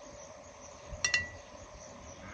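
Glass jars clink against each other.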